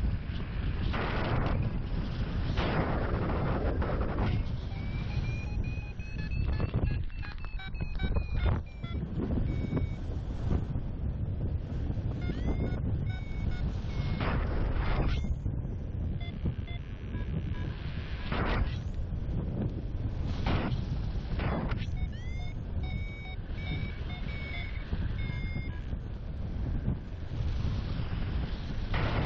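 Strong wind rushes and buffets loudly, as if outdoors high in the air.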